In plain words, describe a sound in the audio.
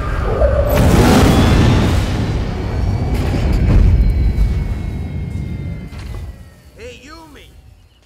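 A spaceship roars loudly overhead and fades.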